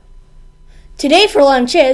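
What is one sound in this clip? A young boy speaks clearly close to a microphone.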